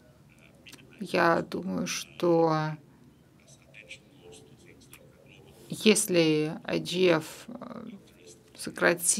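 A middle-aged man speaks calmly through an online call, with pauses.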